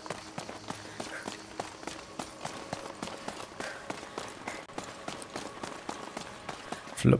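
Footsteps crunch on a dirt path at a walking pace.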